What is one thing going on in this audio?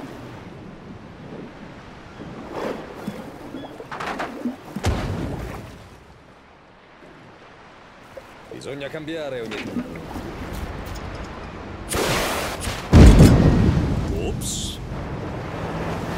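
Waves splash and churn on open water.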